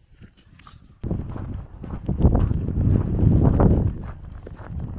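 Footsteps crunch through packed snow.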